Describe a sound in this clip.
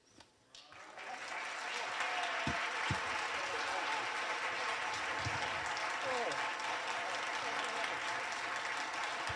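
People applaud steadily in a large echoing hall.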